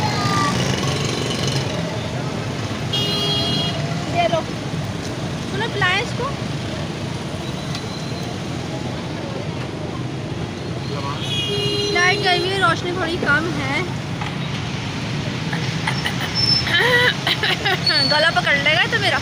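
A busy street hums with crowd and traffic noise.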